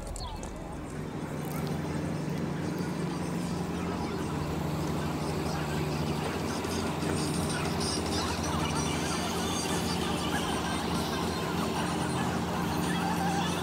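A boat engine drones steadily nearby.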